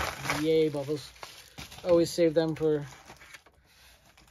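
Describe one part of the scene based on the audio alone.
A cardboard box rustles as a hand rummages inside.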